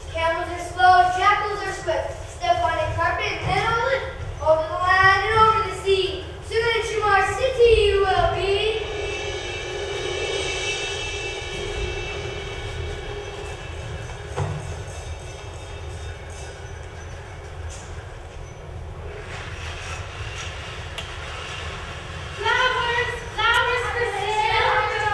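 A woman sings loudly with vibrato in a large hall.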